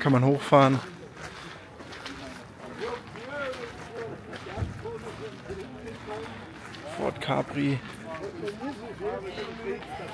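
Men and women chat quietly in the background outdoors.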